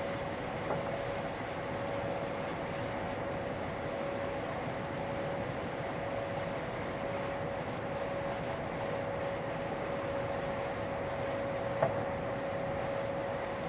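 A train rumbles steadily along the rails with a constant hum.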